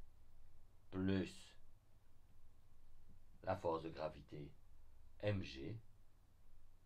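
A man speaks calmly in short phrases, close to a microphone.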